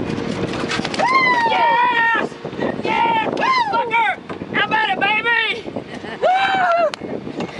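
A woman squeals and shouts excitedly nearby.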